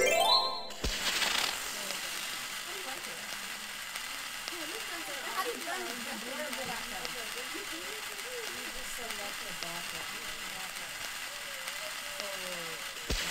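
A lit fuse hisses and crackles steadily.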